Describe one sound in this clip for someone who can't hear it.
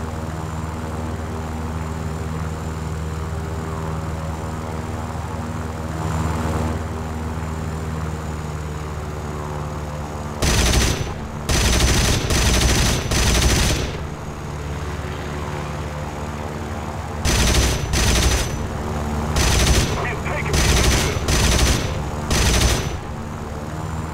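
A piston-engine fighter plane drones.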